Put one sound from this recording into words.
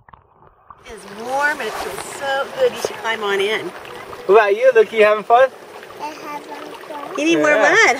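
Water splashes around a swimming child.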